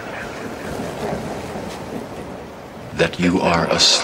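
Ocean waves crash and roll onto the shore.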